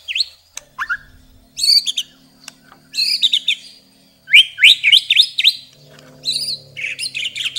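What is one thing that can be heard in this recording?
A songbird sings loud, shrill whistling phrases in short bursts close by.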